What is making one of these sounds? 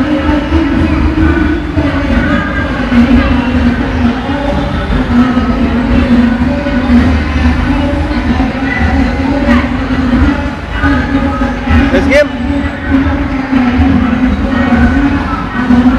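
A children's ride motor hums low as the ride rocks.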